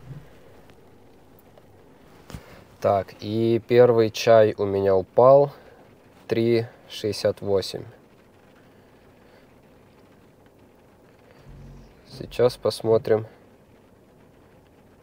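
Rain patters softly on a car's roof and windows.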